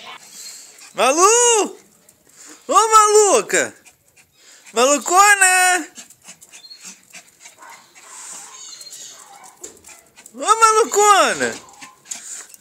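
A small dog howls close by in long, rising and falling wails.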